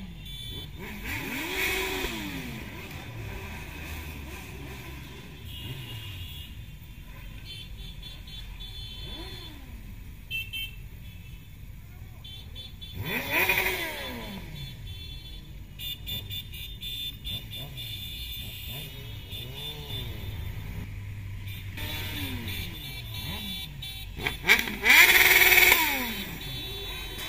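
Motorcycles roar past close by, rising and falling in pitch.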